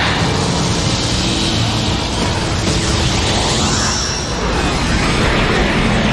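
Energy blasts roar and crackle loudly.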